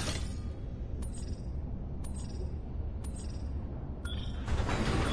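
A countdown beeps once each second.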